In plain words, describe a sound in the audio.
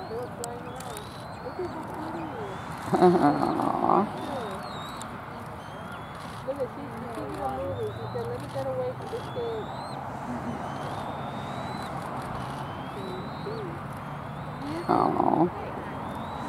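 A juvenile bald eagle flaps its wings on a branch.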